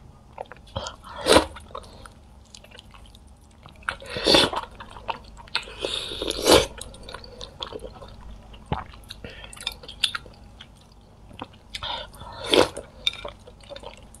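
A young woman sucks noisily on food, close to a microphone.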